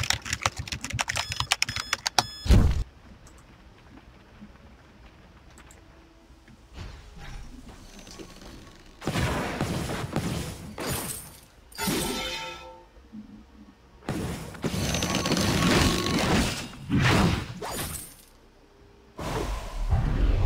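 Magic blasts and clashing blows burst out in a fast fight.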